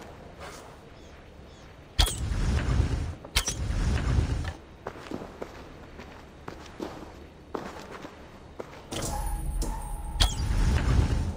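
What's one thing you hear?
A bow is drawn and an arrow is released with a sharp snap.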